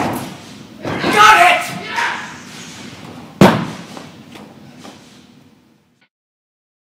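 A person's bare feet thud heavily on a padded floor in a large echoing hall.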